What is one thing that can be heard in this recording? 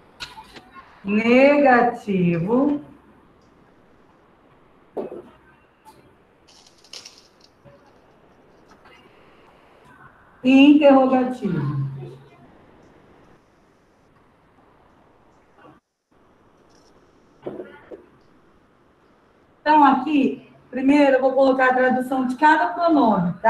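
A woman speaks calmly nearby, in bursts with pauses.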